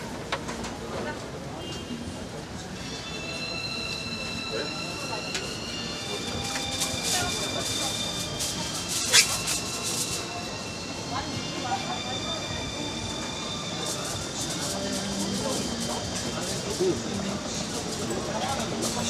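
Skewers sizzle on a hot grill.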